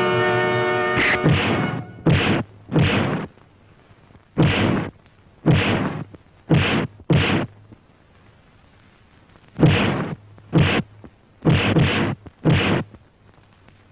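Men exchange punches that land with loud, sharp smacks.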